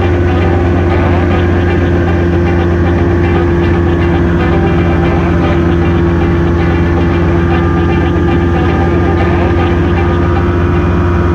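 Wind rushes loudly past an open cockpit.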